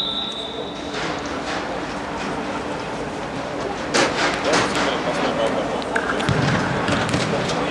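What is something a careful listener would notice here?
Young men call out to each other across an echoing hall.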